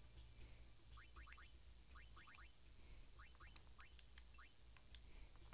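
Short rising electronic blips chirp quickly in small bursts.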